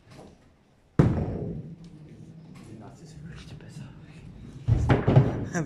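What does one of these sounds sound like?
A bowling ball rumbles steadily along a lane.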